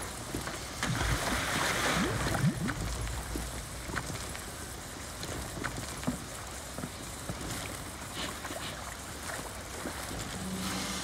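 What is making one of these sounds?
Steady rain falls and hisses.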